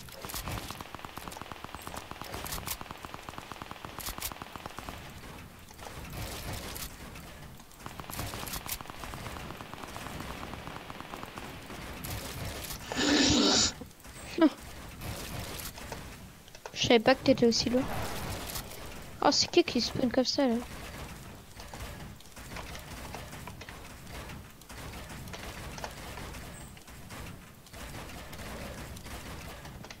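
Footsteps patter quickly across hollow floors.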